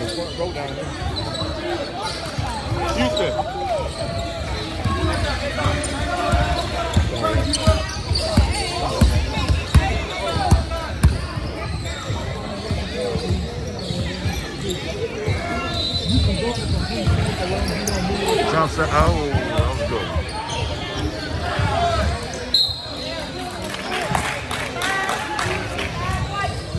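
Sneakers squeak sharply on the hard court.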